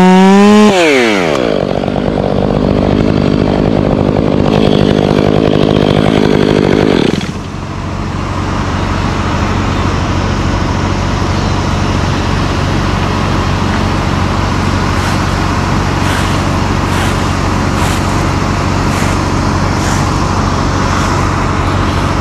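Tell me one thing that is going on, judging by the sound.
A chainsaw idles with a steady low rumble.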